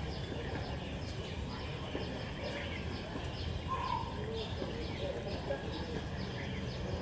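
A tennis ball bounces on a hard court outdoors.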